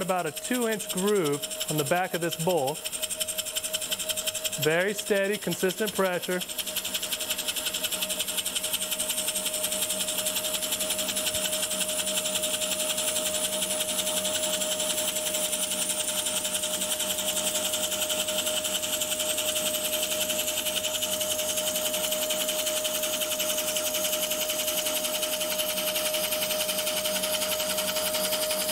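A chisel scrapes and hisses against spinning wood.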